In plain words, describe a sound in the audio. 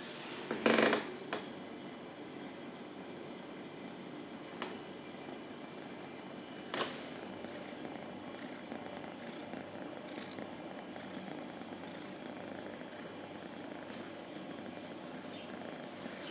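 A hand rubs softly against a cat's fur.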